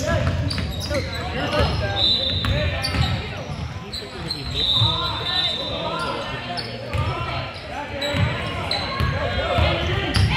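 Spectators talk and call out in an echoing gym.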